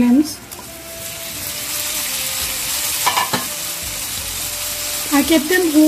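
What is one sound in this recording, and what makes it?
Food sizzles and crackles in hot oil in a pan.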